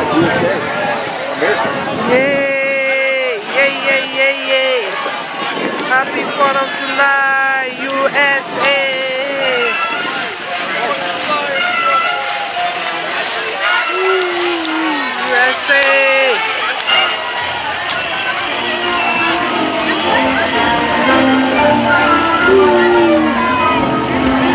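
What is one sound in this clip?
A crowd of people chatters and calls out along a street outdoors.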